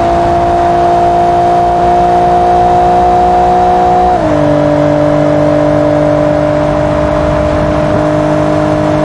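Wind rushes past a fast-moving car.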